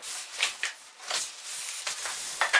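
A cardboard flap scrapes and rustles as a box is opened.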